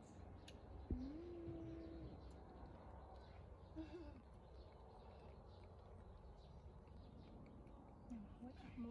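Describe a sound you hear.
A baby macaque coos softly.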